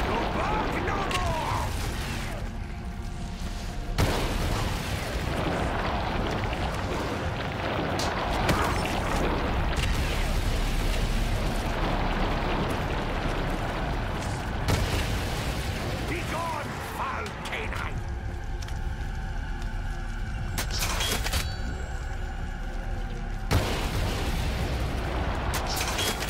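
A heavy gun fires in bursts.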